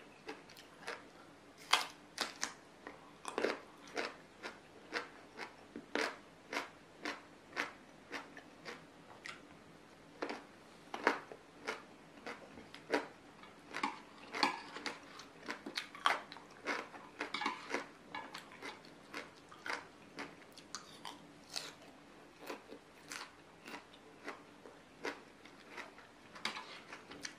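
A young woman chews crunchy food with loud, close crisp crunches.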